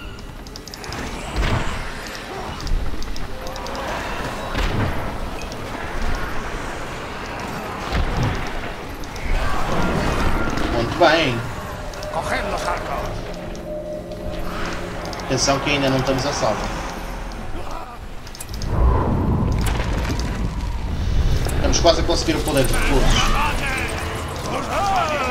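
Metal weapons clash and clang in a busy battle.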